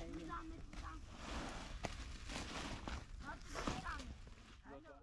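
A plastic tarp rustles and crackles as it is pulled over a frame.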